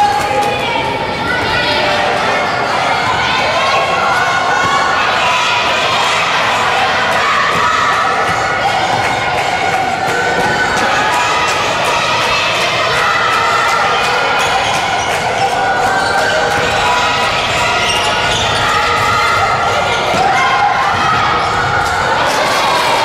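A crowd of young spectators cheers and shouts loudly in a large echoing hall.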